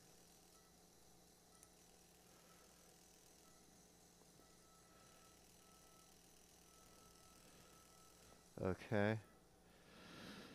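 A surgical shaver whirs steadily.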